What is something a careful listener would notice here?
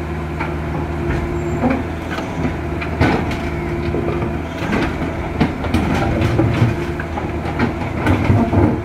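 Rocks knock and clatter as an excavator bucket scrapes through a riverbed.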